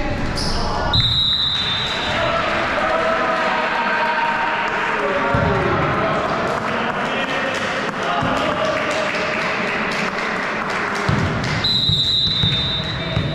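A referee's whistle blows shortly.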